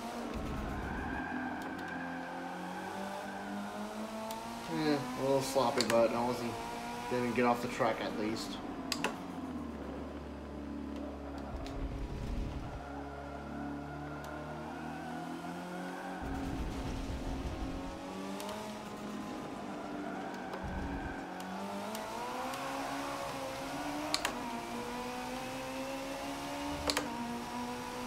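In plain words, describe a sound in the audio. A sports car engine in a racing game revs up and down through a loudspeaker.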